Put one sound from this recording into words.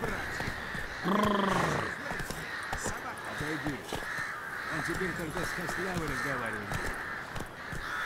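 A man shouts from nearby.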